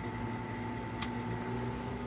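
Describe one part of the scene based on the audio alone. A dial switch clicks as it is turned.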